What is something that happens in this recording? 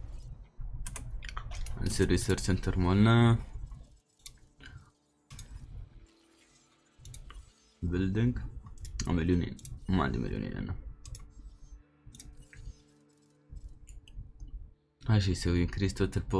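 Soft interface clicks sound as menus open and change.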